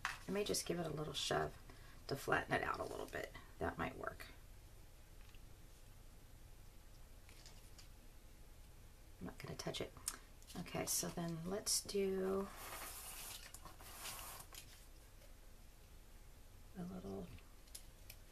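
Paper crinkles and rustles under hands close by.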